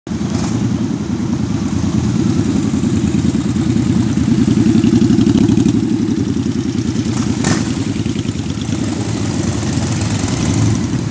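Many motorcycle engines rumble and throb close by as they ride past slowly.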